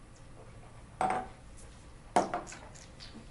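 A glass knocks down onto a hard counter.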